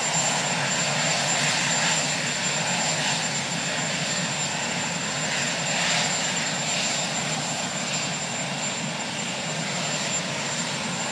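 A helicopter's engine whines and its rotor whooshes loudly and steadily nearby.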